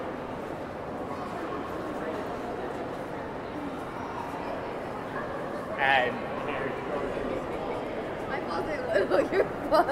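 A crowd murmurs in the distance, echoing under a high roof.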